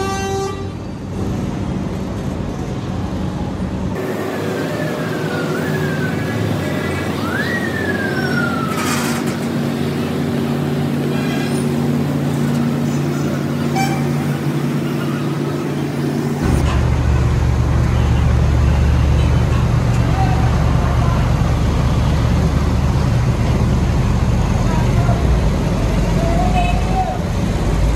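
Large tyres roll slowly over pavement.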